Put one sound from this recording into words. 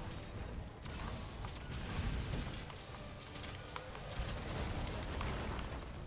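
Heavy blows thud and crash as a huge beast is fought.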